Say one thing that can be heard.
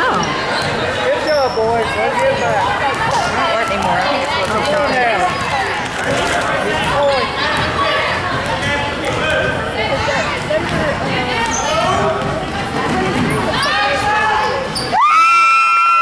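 A crowd of spectators chatters and cheers loudly in an echoing gym.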